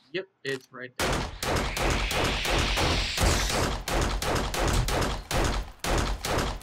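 A machine gun fires rapid bursts of loud shots.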